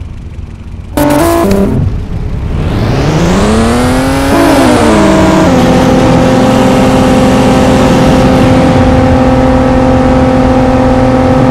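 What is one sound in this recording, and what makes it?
A sports car engine revs up loudly, then settles into a steady drone.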